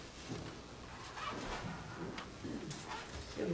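An older woman begins speaking calmly into a microphone.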